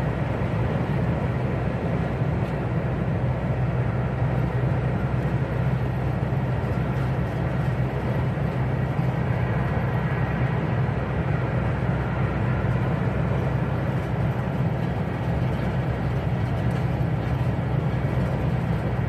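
A vehicle's engine hums steadily from inside the cab.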